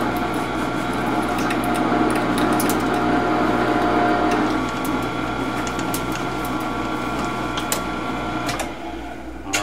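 A metal lathe hums and whirs steadily, then stops.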